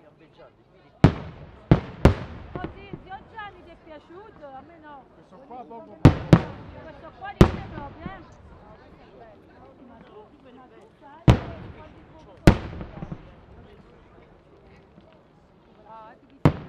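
Fireworks explode with loud, echoing booms.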